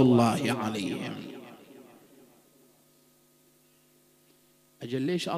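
A man speaks with emphasis into a microphone, his voice echoing in a large hall.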